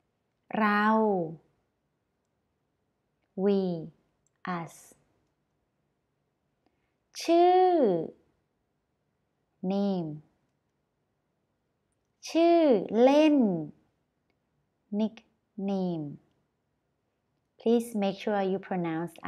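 A young woman speaks clearly and slowly into a close microphone, pausing between words.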